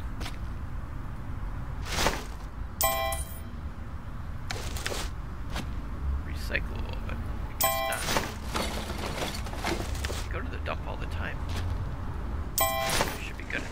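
A garbage bag thuds into a metal container.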